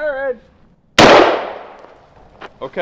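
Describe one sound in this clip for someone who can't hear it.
A single gunshot cracks loudly and echoes outdoors.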